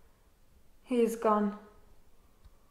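A young woman speaks briefly and sharply nearby.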